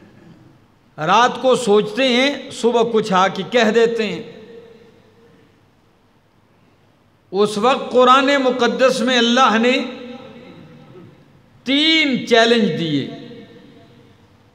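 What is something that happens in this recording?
A man preaches with emphasis into a microphone, in bursts with pauses, in a reverberant room.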